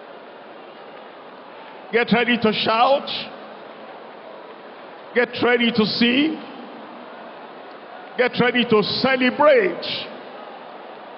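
A crowd murmurs prayers aloud in a large echoing hall.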